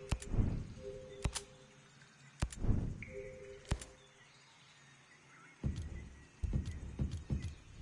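Short electronic menu clicks and chimes sound as selections change.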